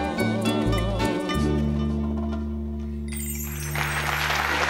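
A woman sings into a microphone with a sustained tone.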